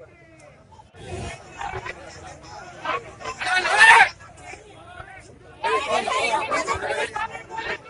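A crowd of men and women shouts and chants outdoors.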